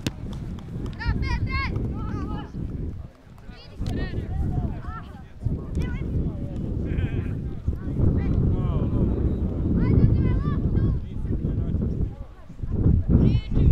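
Young players shout and call out to each other from across the field.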